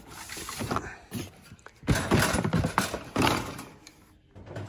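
A cardboard box rustles and scrapes as hands handle it.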